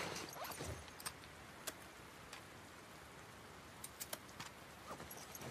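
A rifle's metal parts click and rattle as it is handled.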